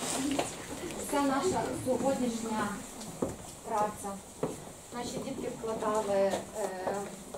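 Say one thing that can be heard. A woman speaks calmly in a room.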